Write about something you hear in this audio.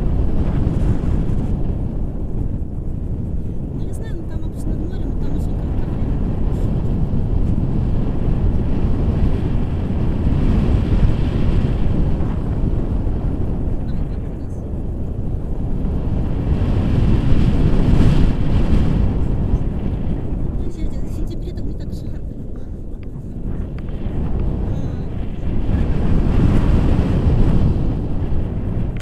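Strong wind buffets a microphone throughout.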